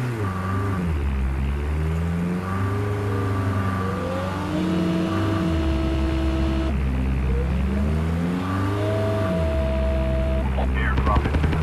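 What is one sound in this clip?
A vehicle engine roars and revs.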